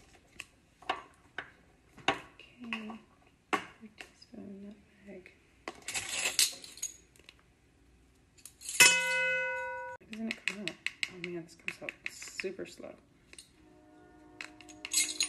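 An egg taps and cracks against the rim of a metal bowl.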